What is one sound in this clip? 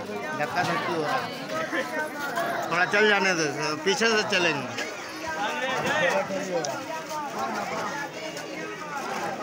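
A crowd of men chants loudly together outdoors.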